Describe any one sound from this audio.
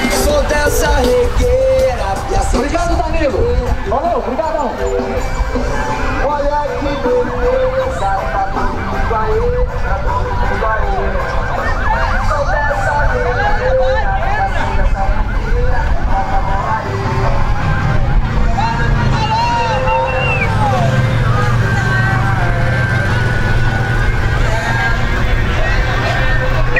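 A crowd of men and women cheers and chatters loudly outdoors.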